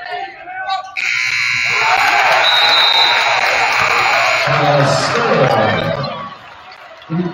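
A crowd cheers and roars loudly.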